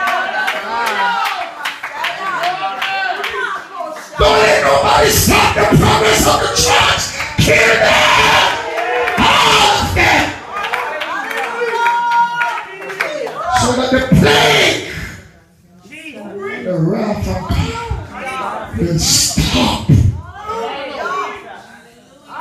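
A man preaches loudly and with fervour through a microphone and loudspeakers in an echoing hall.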